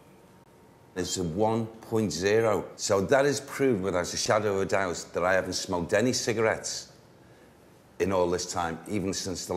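An elderly man speaks calmly, close by.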